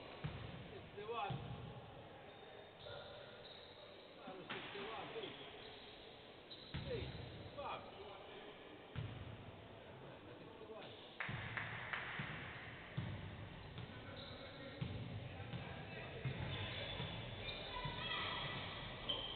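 Sneakers squeak sharply on a hardwood court in a large echoing hall.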